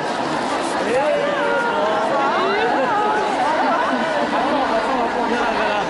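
Women in a crowd chant and shout with animation.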